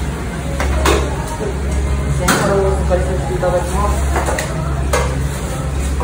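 A metal fryer basket clanks against the fryer.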